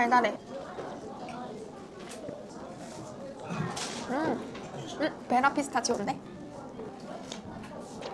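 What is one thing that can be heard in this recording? A young woman sips a drink from a glass.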